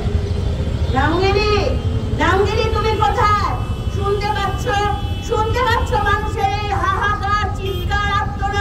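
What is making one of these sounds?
A woman sings a mournful tune through a loudspeaker.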